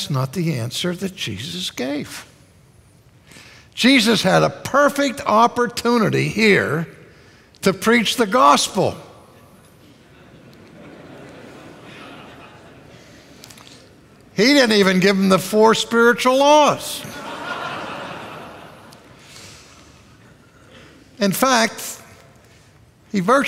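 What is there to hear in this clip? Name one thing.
An older man speaks with animation through a microphone in a large echoing hall, pausing between phrases.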